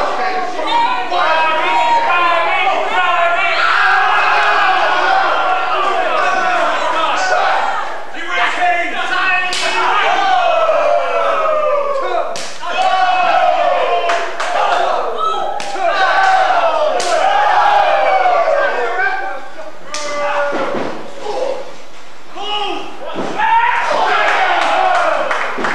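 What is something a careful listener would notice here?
A man shouts and yells nearby.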